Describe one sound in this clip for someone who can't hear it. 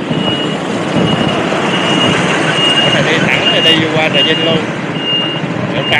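A truck engine roars as a truck passes close by and pulls away.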